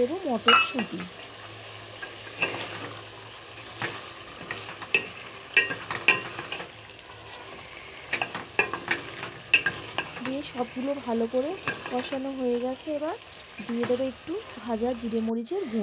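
A wooden spoon scrapes and knocks against a metal pot.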